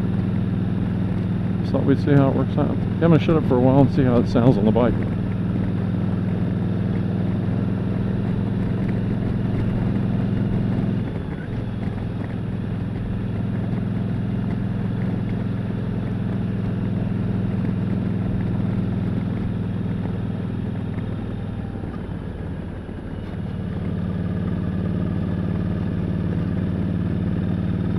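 A motorcycle engine hums steadily at cruising speed, easing off briefly now and then.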